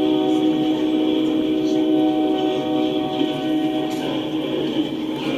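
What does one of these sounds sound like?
Train wheels squeal with a steady high whine on the rails.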